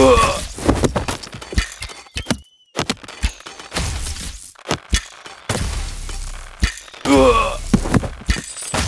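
Swords clash in a noisy battle.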